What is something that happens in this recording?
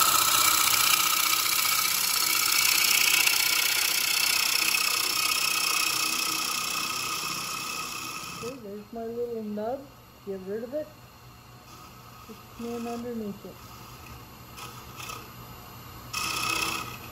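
A chisel scrapes and hisses against spinning wood, then quietens.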